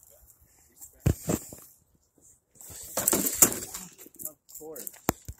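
A small toy truck tumbles and clatters down onto dirt and rocks.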